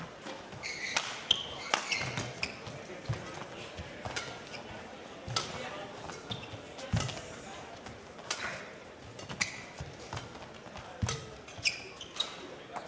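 A shuttlecock is struck sharply back and forth by rackets.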